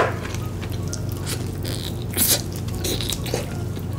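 A young woman slurps food up, close to the microphone.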